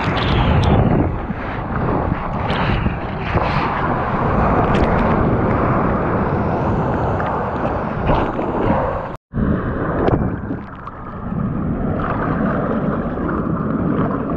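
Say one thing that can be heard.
Surf churns and rushes close by, heard from right at the water's surface.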